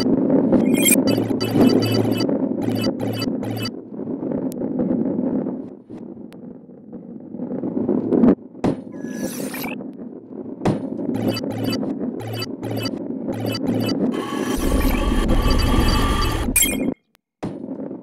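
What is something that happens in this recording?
A heavy ball rolls and rumbles along a wooden track.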